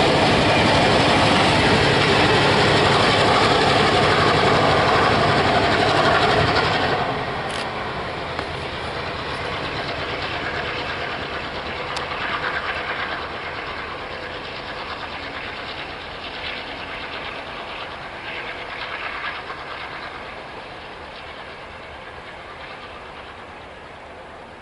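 A passenger train rumbles and clatters along the tracks, then fades into the distance.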